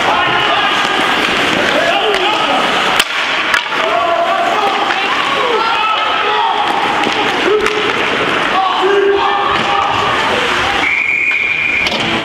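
Children shout and call out across an echoing rink.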